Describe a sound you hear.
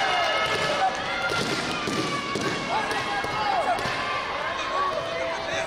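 A crowd cheers and calls out in a large echoing arena.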